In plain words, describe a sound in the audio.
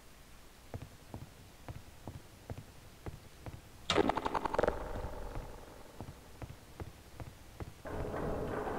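Footsteps thud in a steady rhythm on a hard floor.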